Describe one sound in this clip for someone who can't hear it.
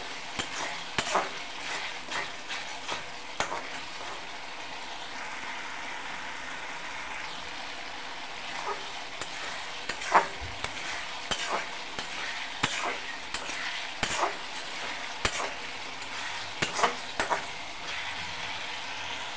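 A metal spatula scrapes and clinks against a metal pan.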